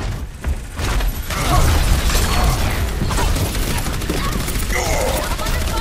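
Energy beams buzz and crackle.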